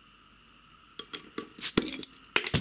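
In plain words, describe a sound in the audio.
A bottle opener clicks against a bottle cap.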